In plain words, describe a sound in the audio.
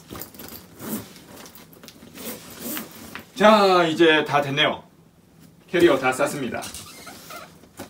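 A zipper on a backpack is pulled shut.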